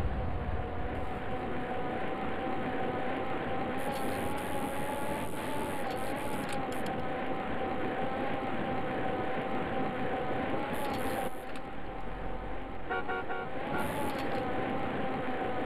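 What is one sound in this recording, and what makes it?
Bicycle tyres roll along pavement.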